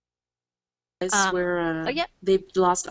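A woman speaks calmly through a headset microphone, as on an online call.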